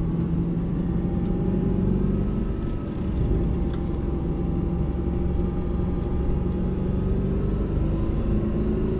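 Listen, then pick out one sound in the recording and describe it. A car engine roars steadily from inside the cabin as the car speeds along.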